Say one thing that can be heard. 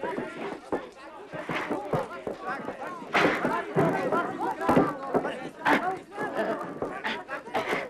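Several young men shout and yell excitedly close by.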